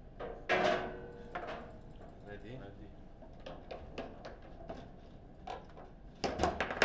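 A foosball ball cracks sharply against the rods and table walls.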